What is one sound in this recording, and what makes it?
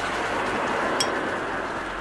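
A metal switch clicks.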